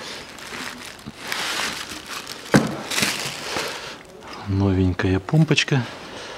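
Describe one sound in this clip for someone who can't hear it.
Plastic bubble wrap crinkles and rustles in hands.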